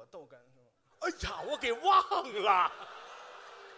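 An older man speaks loudly through a microphone.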